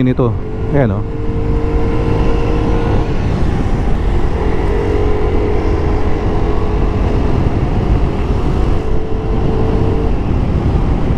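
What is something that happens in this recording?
A scooter motor hums steadily.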